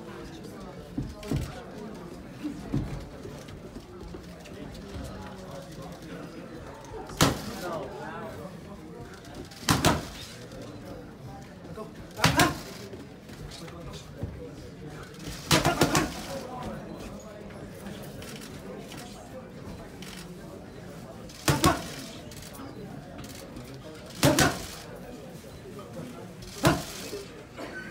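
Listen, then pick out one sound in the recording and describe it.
Boxing gloves smack sharply against punch mitts in quick bursts.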